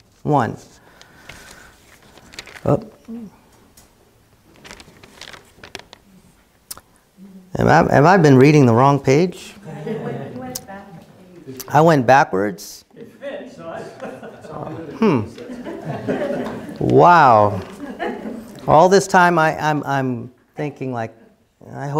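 A middle-aged man reads aloud through a microphone in a room with a slight echo.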